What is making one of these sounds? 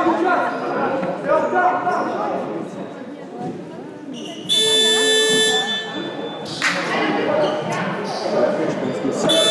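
A man shouts instructions loudly across an echoing hall.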